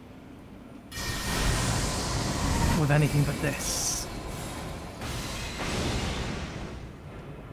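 A magic weapon crackles and whooshes as it is swung.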